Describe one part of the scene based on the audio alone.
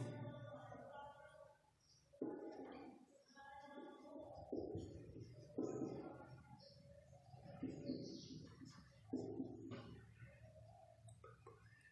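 A marker squeaks against a whiteboard.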